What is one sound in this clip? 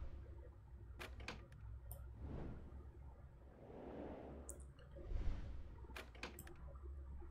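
A locked door handle clicks and rattles.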